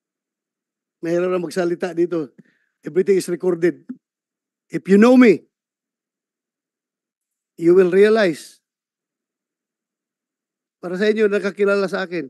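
A middle-aged man speaks into a microphone in short, emphatic bursts with pauses between them.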